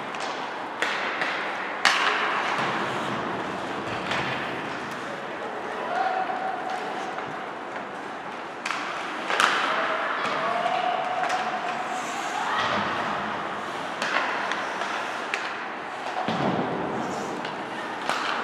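Hockey sticks click and slap against a puck.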